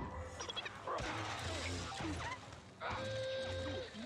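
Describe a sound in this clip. Lightsaber clashes and blaster shots crackle.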